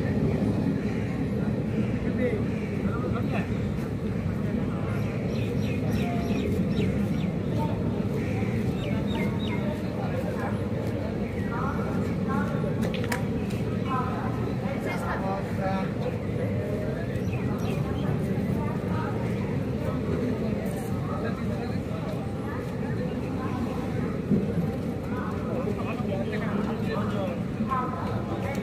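A train rolls steadily past, its wheels rumbling and clattering on the rails.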